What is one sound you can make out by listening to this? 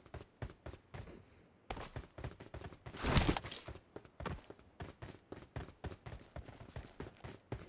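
Footsteps run on concrete.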